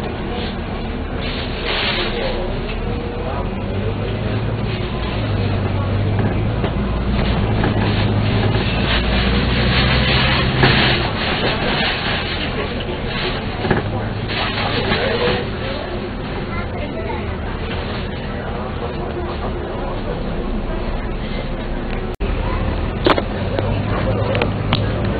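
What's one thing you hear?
A bus engine hums and rumbles steadily as the bus drives along.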